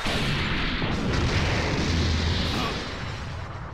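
A heavy blast rumbles as dust billows.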